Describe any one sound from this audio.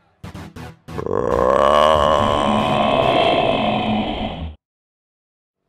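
A monster roars loudly and long.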